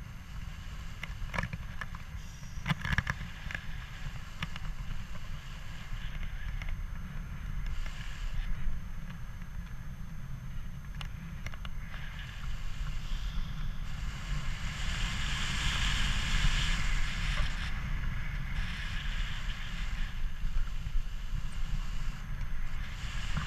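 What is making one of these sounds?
Wind rushes and buffets steadily past.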